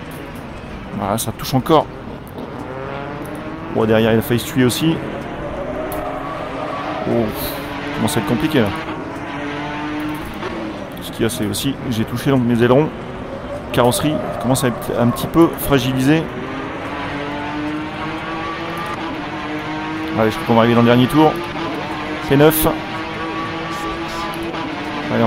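A racing car engine roars loudly, revving up and dropping sharply with each gear change.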